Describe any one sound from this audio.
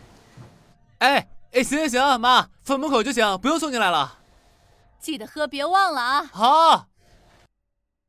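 A young man answers lazily and drawn out.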